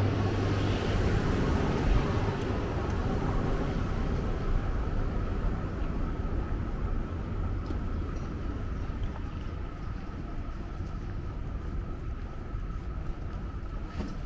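Distant city traffic hums outdoors.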